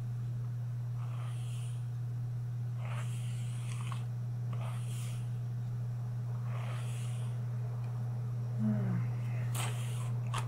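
A young woman whispers close to the microphone.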